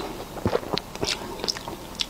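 A young woman speaks briefly close to a microphone.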